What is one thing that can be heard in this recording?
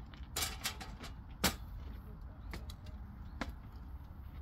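A metal stepladder creaks and clanks under footsteps.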